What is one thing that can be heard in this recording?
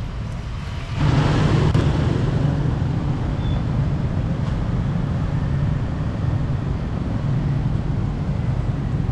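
A car engine rumbles close by in passing traffic.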